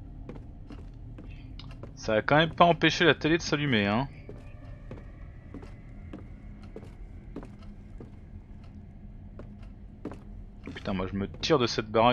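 Slow footsteps tap on a hard floor.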